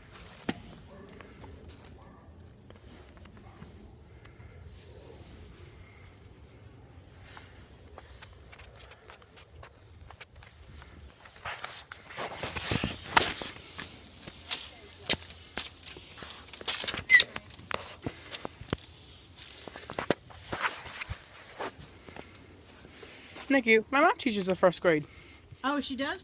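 A young man speaks quietly close to a phone microphone.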